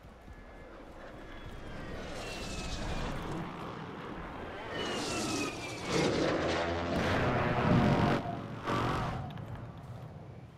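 Wind rushes loudly past during a fall, then dies away.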